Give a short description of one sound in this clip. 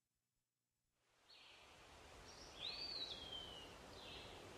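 Wind rustles through the leaves of trees.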